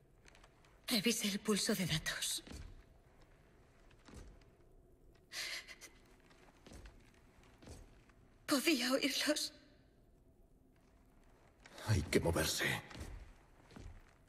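A man answers in a low, calm voice.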